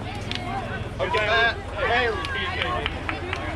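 Children cheer and shout loudly.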